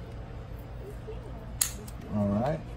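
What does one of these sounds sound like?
Scissors snip through plastic tubing.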